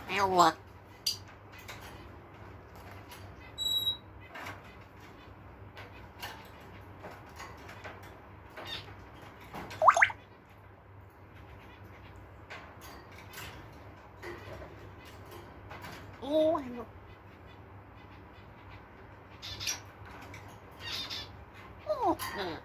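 A parrot's beak and claws clink against metal cage bars.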